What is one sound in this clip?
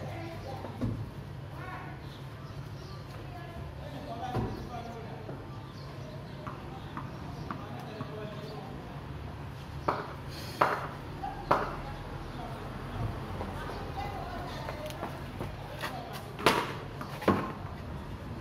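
A tennis ball bounces on a hard floor.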